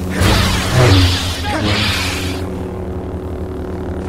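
A sword clashes and slashes hard in combat.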